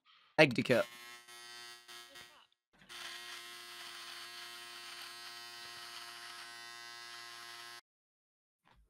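An electric shaver hums steadily against skin.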